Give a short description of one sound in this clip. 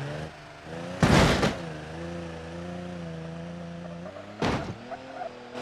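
A car lands with a loud thud.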